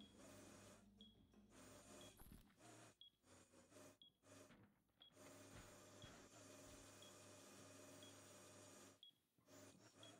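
A small drone's motor whirs steadily.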